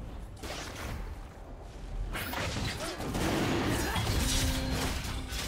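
Magic spells whoosh and burst in a fast video game fight.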